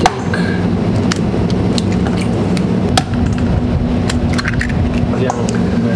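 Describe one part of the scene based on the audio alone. An egg cracks against the rim of a metal bowl.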